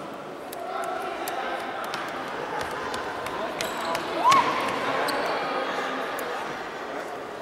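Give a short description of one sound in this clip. Sneakers squeak on a wooden floor in a large echoing hall.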